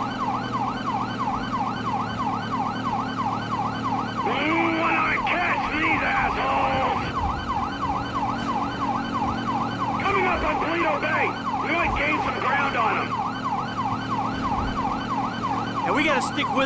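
A siren wails in a fast, steady yelp.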